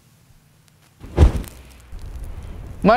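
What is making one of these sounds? A fire bursts into flame with a whoosh.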